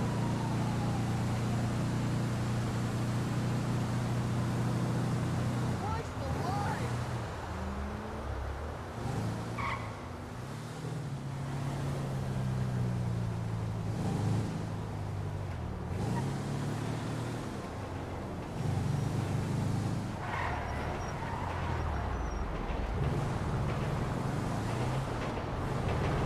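A heavy truck engine drones steadily, rising and falling in pitch as it speeds up and slows down.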